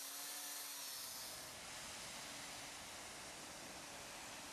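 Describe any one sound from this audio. An industrial vacuum roars steadily.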